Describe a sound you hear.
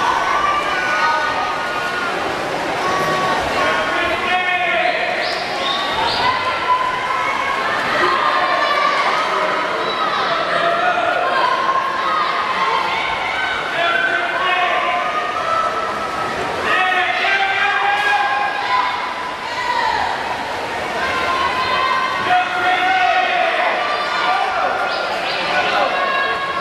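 A crowd cheers and shouts throughout a large echoing hall.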